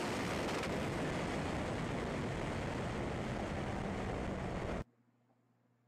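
Wind rushes hard past the car.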